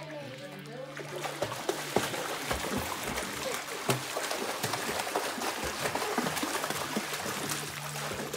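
Water splashes loudly as children kick and swim.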